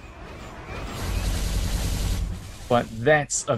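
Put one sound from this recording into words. An explosion booms with a roar.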